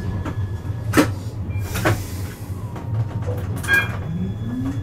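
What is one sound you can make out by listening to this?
Tram wheels clack over rail joints.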